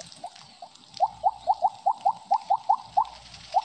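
Short rising electronic blips chime in quick succession.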